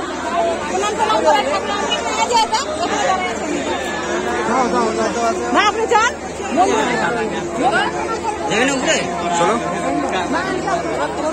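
Men and women shout and cheer in the crowd.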